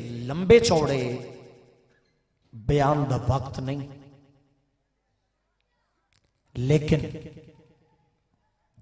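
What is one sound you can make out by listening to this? A man chants loudly into a microphone in bursts that echo and die away.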